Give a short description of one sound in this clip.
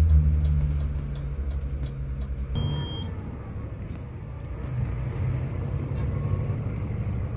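A bus engine hums low and steady.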